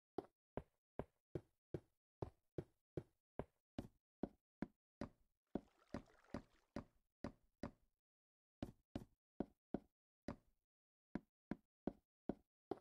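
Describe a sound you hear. Footsteps thud at a steady, quick pace.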